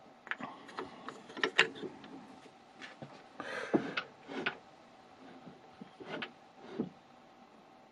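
A block of wood knocks against metal fittings.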